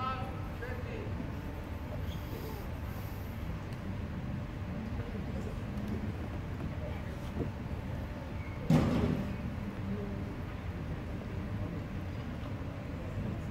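Shuttlecocks are struck by rackets with light pops in a large echoing hall.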